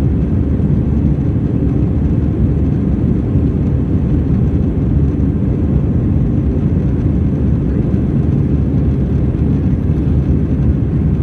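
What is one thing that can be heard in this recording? A jet airliner's engines roar steadily with a deep rumble, heard from inside the cabin.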